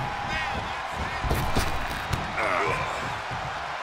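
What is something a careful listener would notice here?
Heavy blows thud on bodies.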